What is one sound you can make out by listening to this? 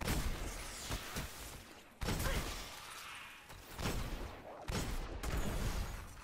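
A gun fires loud, booming shots that echo briefly.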